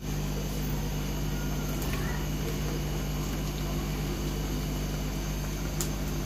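Chopped beans tumble into a pan of oil.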